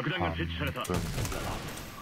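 A rifle fires a loud shot.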